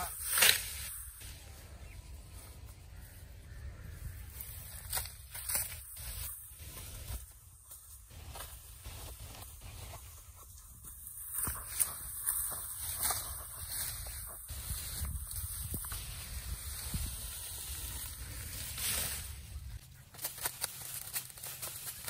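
A sickle slices through stalks of grass.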